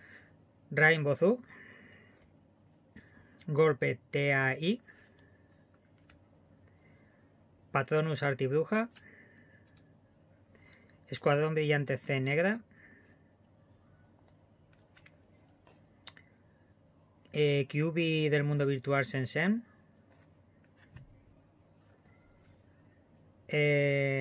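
Playing cards slide and rustle softly as they are handled.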